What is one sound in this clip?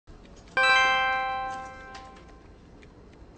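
A phone chimes with a message alert.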